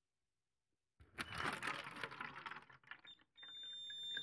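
Water splashes and pours into a plastic bowl.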